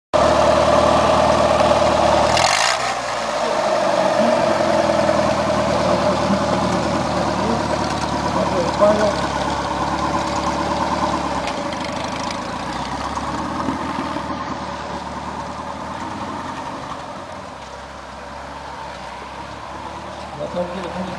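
An off-road trial SUV's engine revs as it crawls over a steep hill.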